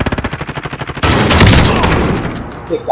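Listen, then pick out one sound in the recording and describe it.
A rifle fires a rapid burst close by.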